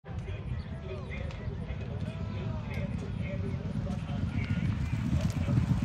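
Horses' hooves pound on turf.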